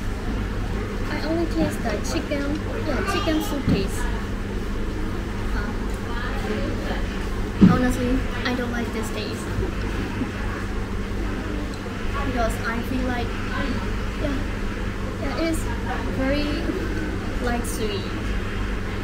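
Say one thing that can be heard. A young woman talks casually and close by.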